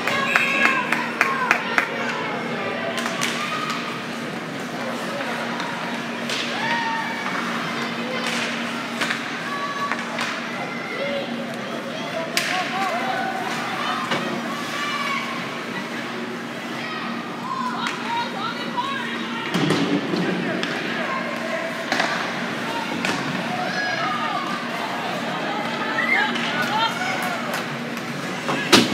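Skates scrape across the ice.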